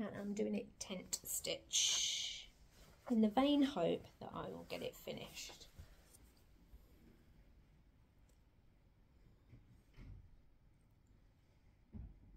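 Fabric rustles as a hand handles a cloth.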